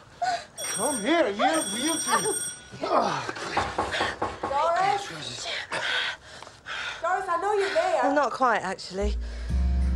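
A woman moans and gasps breathily.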